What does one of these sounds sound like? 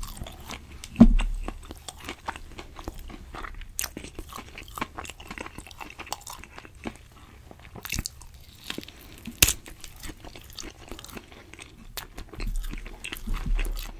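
Sticky meat crackles and tears in a man's fingers close to a microphone.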